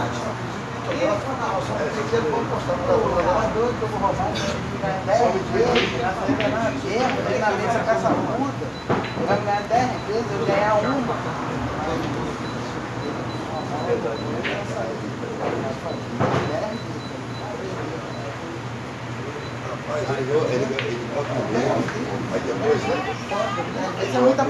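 Several young men talk and call out loudly nearby.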